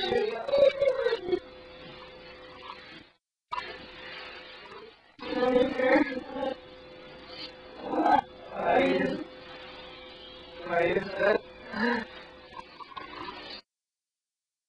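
A young girl sings loudly and playfully close by.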